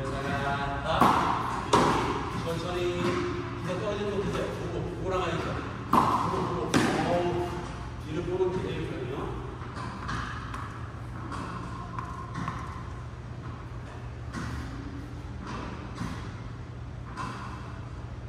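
A tennis racket strikes a ball with sharp pops in an echoing hall.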